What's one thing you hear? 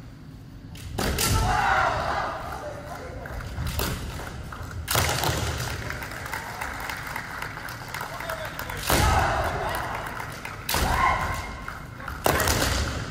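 Fencers shout loudly in a large echoing hall.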